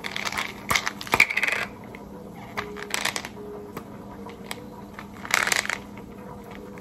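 A foil seal crinkles and tears as it is peeled off a plastic bottle.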